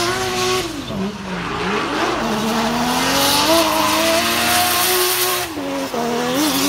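Tyres squeal and hiss as a car slides sideways.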